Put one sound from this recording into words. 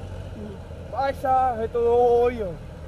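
A man shouts nearby outdoors.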